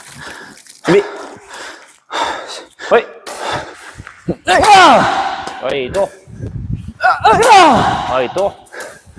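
A badminton racket smacks a shuttlecock.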